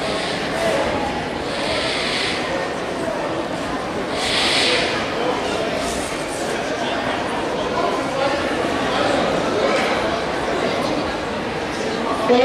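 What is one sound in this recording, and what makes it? Many people chatter at once in a large echoing hall.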